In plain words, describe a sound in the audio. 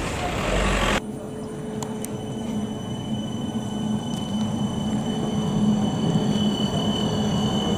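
A tram hums and whines steadily as it rolls slowly past.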